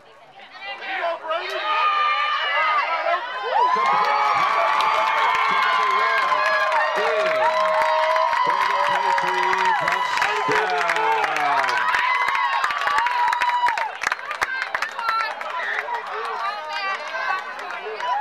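Young girls cheer and scream loudly nearby.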